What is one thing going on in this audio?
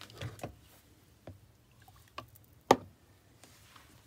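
Liquid pours into a plastic jug.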